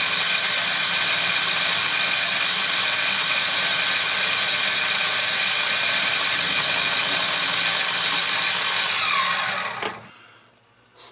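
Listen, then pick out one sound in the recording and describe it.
A drill press whirs loudly as it bores into wood.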